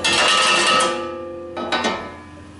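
Sand pours from a metal scoop into a metal splitter with a ringing hiss.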